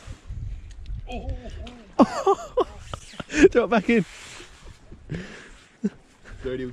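Water laps gently against wooden pilings.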